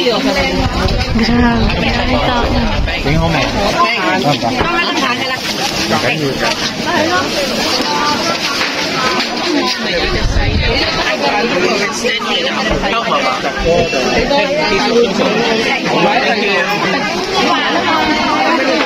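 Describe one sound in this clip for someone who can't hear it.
A dense crowd of men and women chatters all around, close by.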